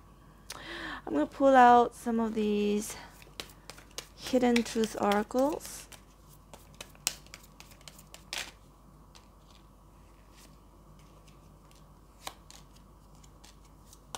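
Paper cards softly rustle and slide as they are picked up.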